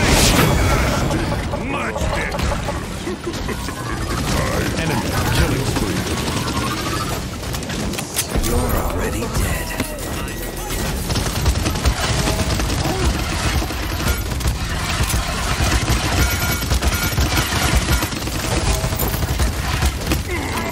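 Rapid gunfire and blasts crackle from a game.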